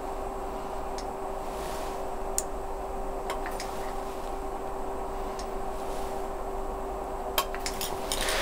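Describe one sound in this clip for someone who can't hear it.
A pipette clicks softly.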